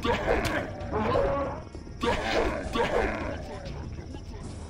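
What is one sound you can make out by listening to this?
A beast snarls and growls up close.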